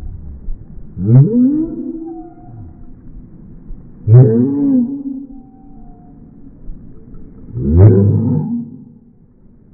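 A small dog howls and yips in short bursts up close.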